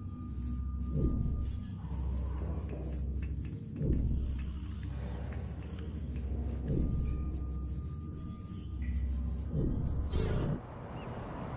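Footsteps thud softly on a metal deck.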